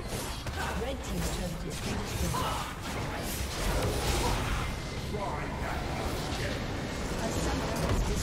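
Video game spells whoosh and crackle during a battle.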